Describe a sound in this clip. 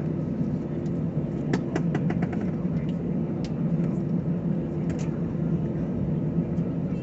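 A jet airliner's engines roar during takeoff, heard from inside the cabin.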